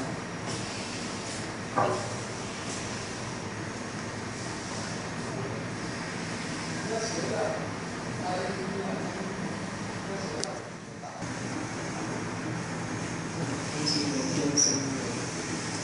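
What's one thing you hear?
A printing machine hums and whirs steadily.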